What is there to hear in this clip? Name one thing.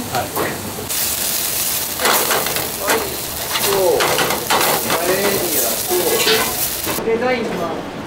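Food sizzles and hisses in a hot pan.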